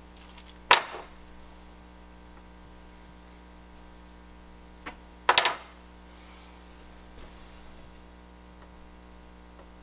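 A man slides a flat board across a workbench.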